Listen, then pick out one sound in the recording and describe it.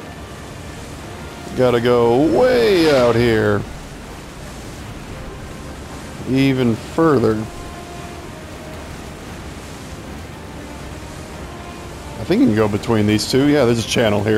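A small boat motor hums steadily.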